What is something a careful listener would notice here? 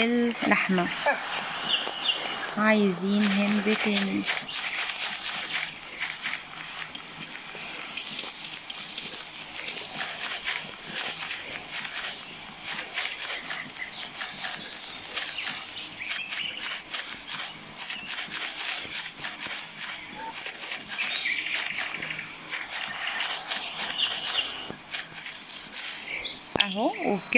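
Footsteps crunch quickly through dry leaves and grass.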